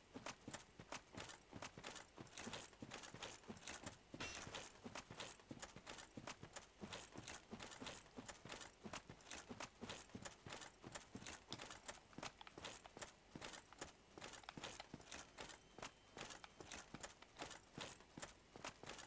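Armoured footsteps thud steadily on grass and rock.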